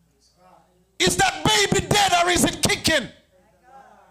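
A man speaks with animation into a microphone in an echoing hall.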